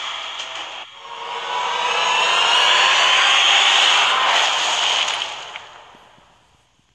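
A large structure explodes with a roaring blast that slowly fades.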